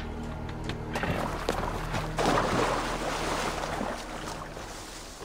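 Horses' hooves clatter past.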